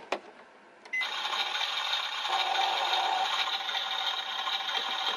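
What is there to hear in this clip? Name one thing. A toy oven plays a crackling, sizzling cooking sound.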